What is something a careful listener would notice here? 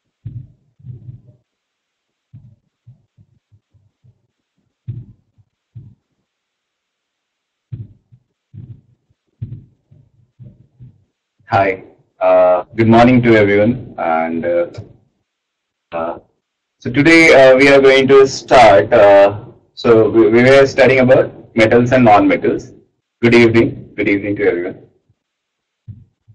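A young man speaks calmly through an online call microphone.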